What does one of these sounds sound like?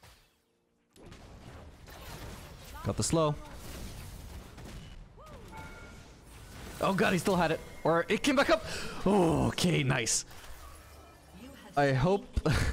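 Magic blasts and clashing hits of a video game battle crackle and boom.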